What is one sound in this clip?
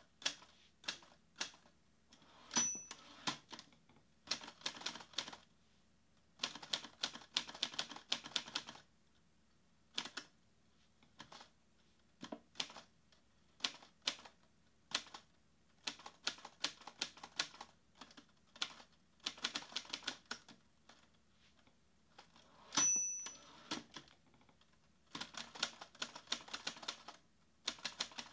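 Fingers type quickly on a laptop keyboard in bursts, keys clicking close by.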